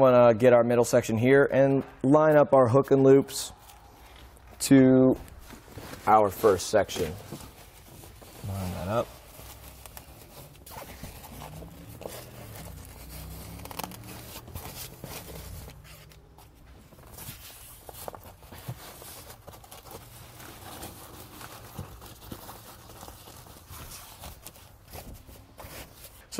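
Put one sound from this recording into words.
Fabric rustles as a seat cover is handled and smoothed.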